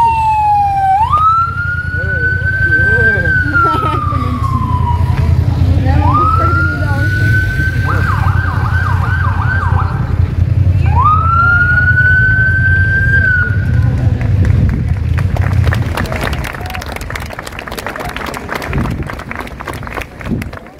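A crowd of people murmurs outdoors.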